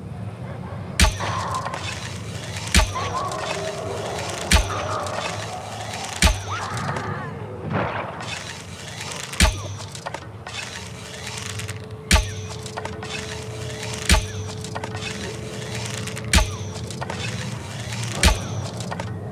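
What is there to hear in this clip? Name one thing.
A crossbow fires bolts in sharp snaps.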